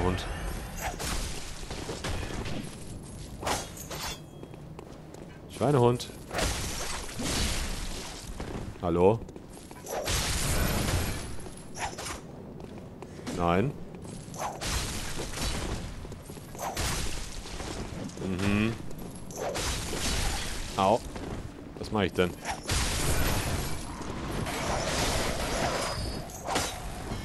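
Blades slash and strike flesh in quick bursts.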